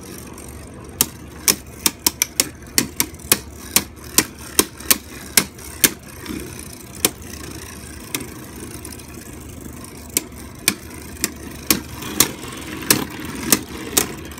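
Two spinning tops clash with sharp, quick clicks.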